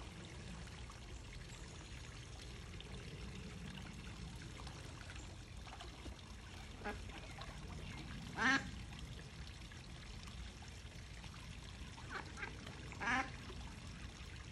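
A small waterfall splashes steadily into a pond.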